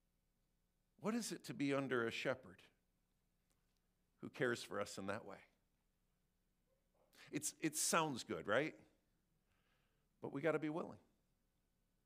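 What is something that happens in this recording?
A man speaks through a microphone in short bursts with pauses.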